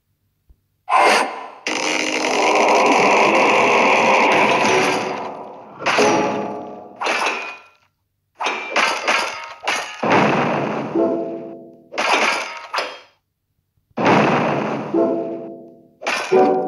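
Gems clink and shatter as they match and fall.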